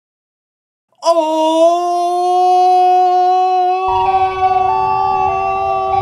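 A young man sings a long, loud, held note close to a microphone.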